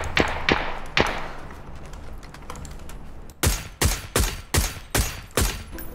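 Rifle shots crack loudly in quick, repeated bursts.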